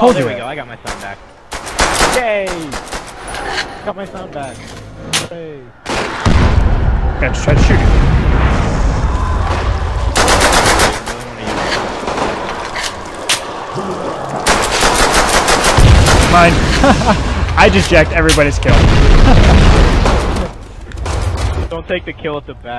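A pistol fires in sharp, repeated shots.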